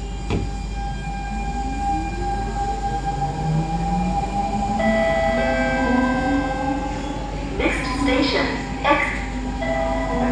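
A train's motor whines, rising in pitch as it pulls away.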